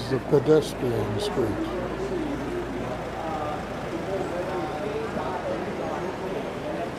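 A crowd of people murmurs and chatters in a busy street.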